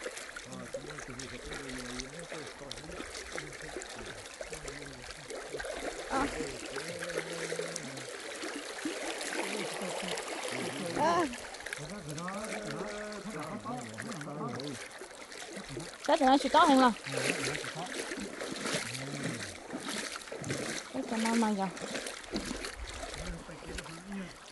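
Shallow river water ripples and gurgles.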